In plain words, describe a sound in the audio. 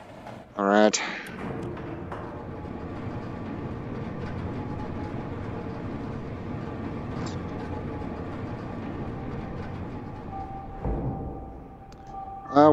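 An elevator hums and rumbles steadily as it moves.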